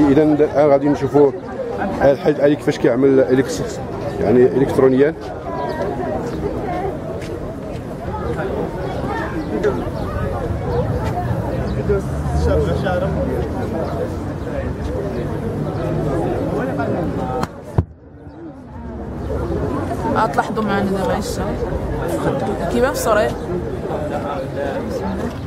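Young men talk nearby.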